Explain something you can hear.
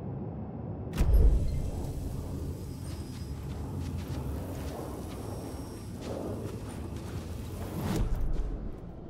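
Footsteps walk across a carpeted floor.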